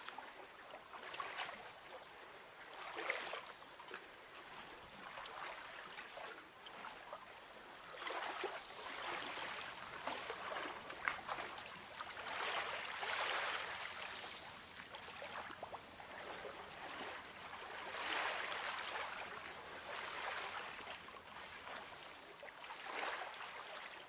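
Hands brush and slide over paper.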